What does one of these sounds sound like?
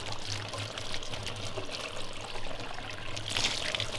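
Water splashes steadily from a spout onto a hand.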